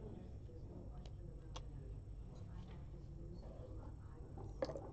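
Backgammon checkers click as a hand moves them on the board.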